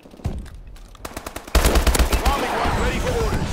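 Rapid bursts of automatic gunfire ring out loudly.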